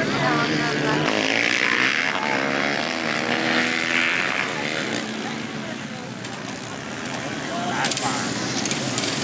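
Children chatter and call out nearby outdoors.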